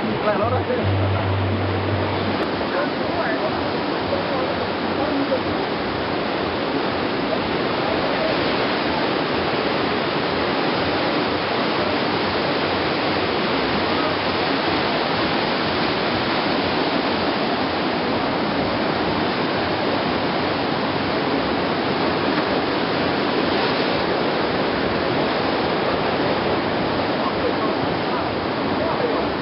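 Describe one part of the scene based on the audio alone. Waves crash and churn steadily against rocks below.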